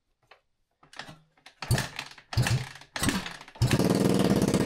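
A man kicks a dirt bike's kick starter several times.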